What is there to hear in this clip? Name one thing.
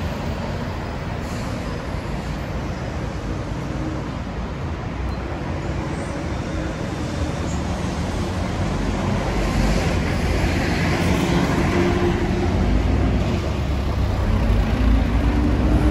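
City traffic rumbles steadily outdoors.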